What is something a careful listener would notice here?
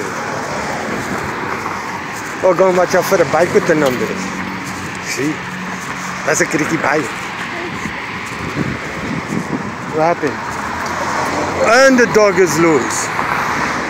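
Footsteps fall on a concrete pavement outdoors.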